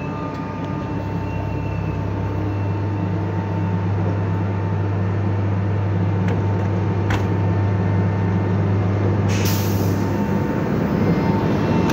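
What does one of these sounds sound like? Train wheels roll slowly over the rails.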